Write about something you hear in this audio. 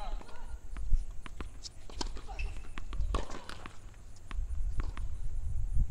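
A tennis ball bounces on a hard court several times.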